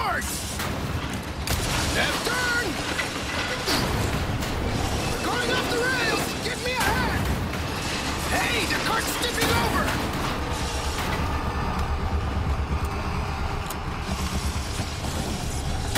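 A mine cart rattles and clatters along metal rails.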